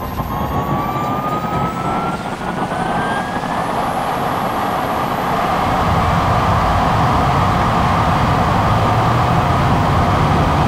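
Tyres roar on a rough road surface.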